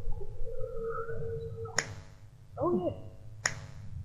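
A light switch clicks.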